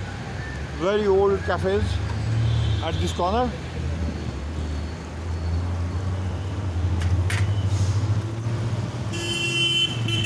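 A large truck engine rumbles close by.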